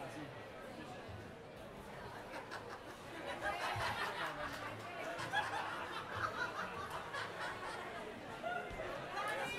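A band plays acoustic guitars.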